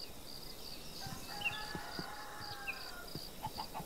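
A sheep bleats nearby.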